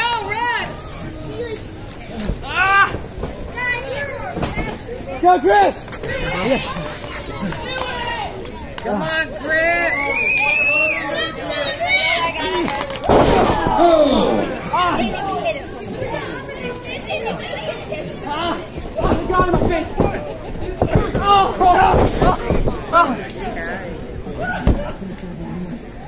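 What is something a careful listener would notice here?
A crowd of men and women shouts and cheers nearby outdoors.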